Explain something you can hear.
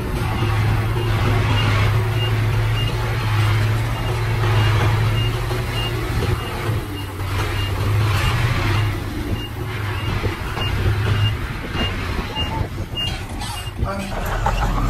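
A truck engine idles with a low, steady hum.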